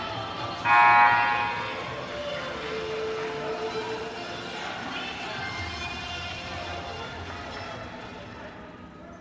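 A group of young women shout and cheer together close by.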